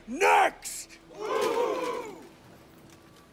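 A crowd of men cheers with a loud shout.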